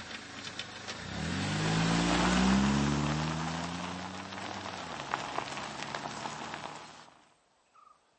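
A car engine revs and drives off.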